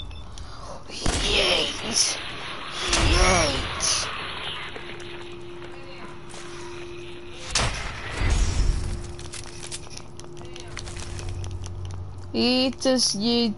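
Giant insects screech and squeal.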